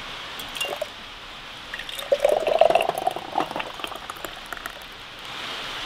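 Glass jars clink against each other.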